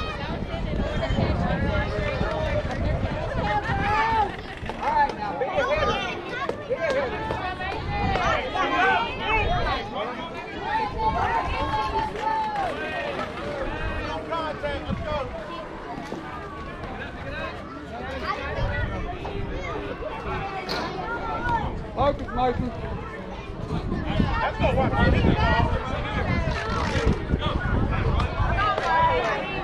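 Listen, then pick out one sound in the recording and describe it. Young girls shout and cheer nearby.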